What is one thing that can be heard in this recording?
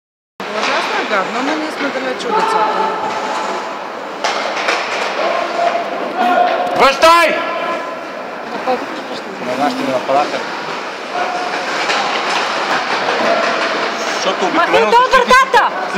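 Ice skates scrape and swish on the ice.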